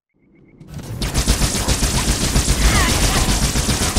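A loud explosion booms and crackles.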